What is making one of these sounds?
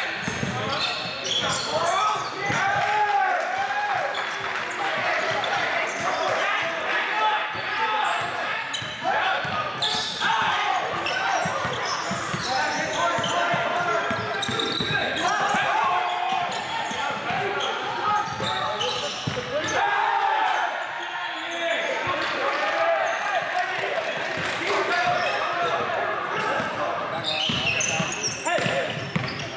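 Young men shout and call out to each other in an echoing hall.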